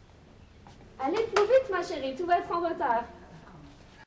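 A young woman speaks briskly nearby.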